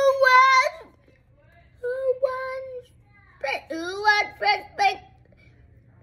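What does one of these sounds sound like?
A young child speaks with animation close by.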